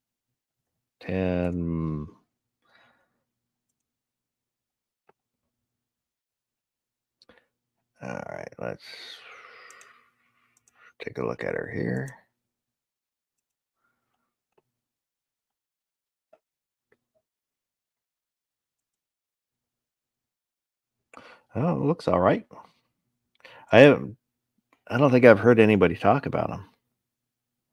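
A man talks calmly into a headset microphone, in short bursts with pauses.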